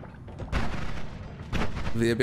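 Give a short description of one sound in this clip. A buzzing laser beam fires.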